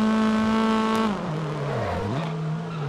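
A racing car engine drops off sharply as the car brakes for a corner.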